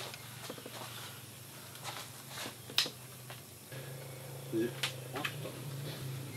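Small clicks and knocks sound as lamps are handled.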